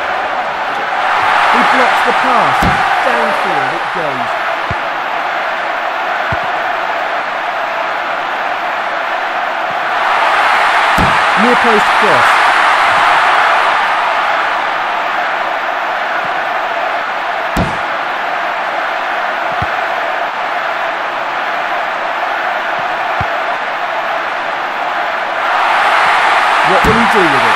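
A stadium crowd roars and cheers, swelling loudly at times.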